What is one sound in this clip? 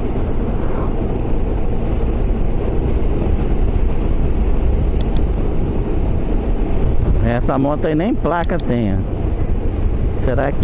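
Wind roars steadily against a moving motorcycle.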